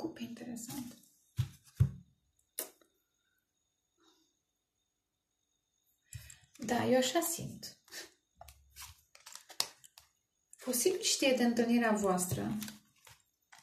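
Playing cards rustle and flick as they are shuffled and handled.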